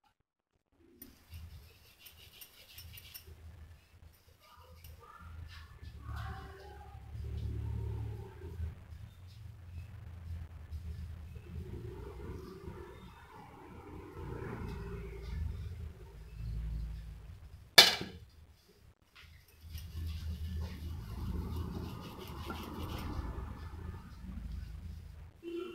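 Fingers press and roll soft dough with faint soft rubbing sounds.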